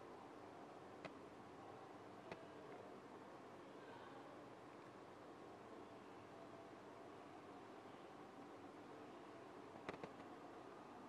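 A small plastic cap clicks and twists on a bottle.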